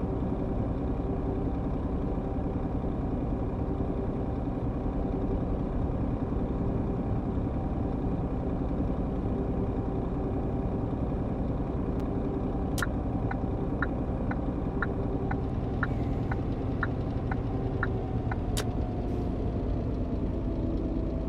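A diesel truck engine drones as the truck cruises on a motorway.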